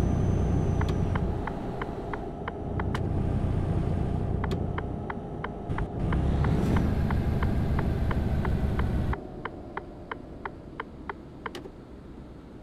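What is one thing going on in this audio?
A turn signal clicks in an even rhythm.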